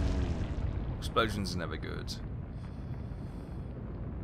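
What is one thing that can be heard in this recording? A shell bursts in the sea with a heavy boom and a splashing roar.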